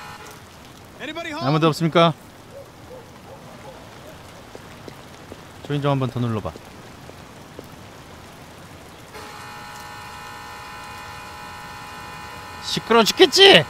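A young man calls out in a calm, clear voice.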